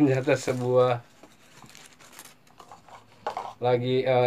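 Paper crumples and rustles.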